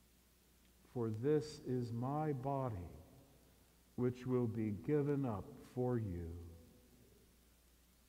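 An elderly man chants through a microphone.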